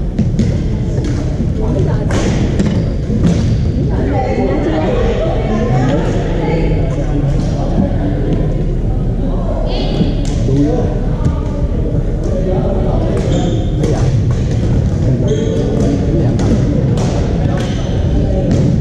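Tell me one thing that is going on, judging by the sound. Paddles pop against a plastic ball in quick rallies.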